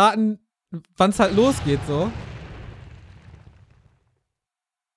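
A game explosion booms and slowly fades.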